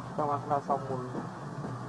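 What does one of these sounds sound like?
A monkey gives a few short, high squeals close by.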